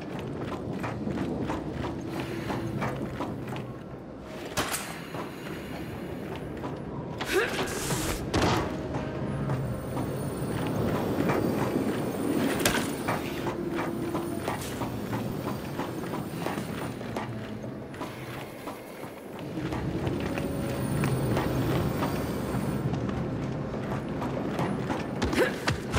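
Heavy boots clank steadily on a metal floor.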